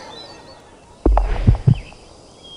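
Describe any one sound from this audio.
A putter taps a golf ball.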